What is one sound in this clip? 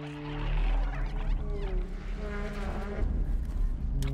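Water rushes and splashes nearby.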